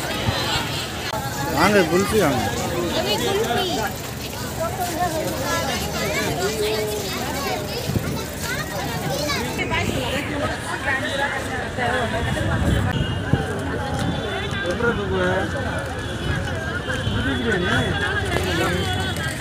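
A crowd chatters in the background outdoors.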